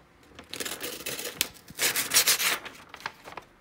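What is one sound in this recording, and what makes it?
A knife slices through stiff paper with a rasping scrape.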